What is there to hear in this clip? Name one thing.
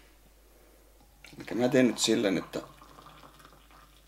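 Water pours from a kettle into a glass.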